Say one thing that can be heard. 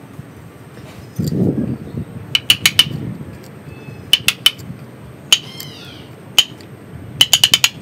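A metal tool scrapes and picks at dry soil among roots.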